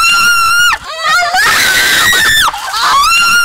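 Water splashes down from a bucket.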